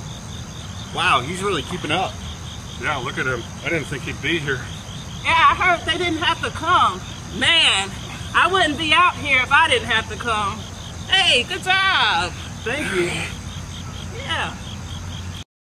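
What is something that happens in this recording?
Several men count out loud together outdoors.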